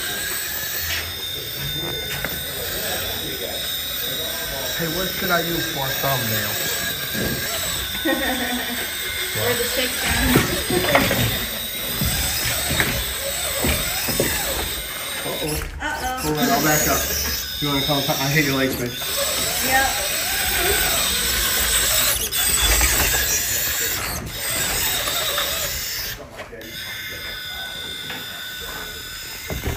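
A small electric motor whirs as a toy truck crawls over rocks.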